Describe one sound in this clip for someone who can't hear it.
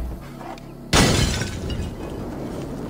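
A fire bursts into flame with a loud whoosh.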